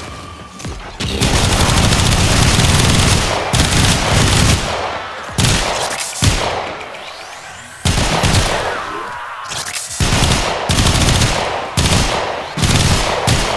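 Rapid gunfire blasts in loud bursts.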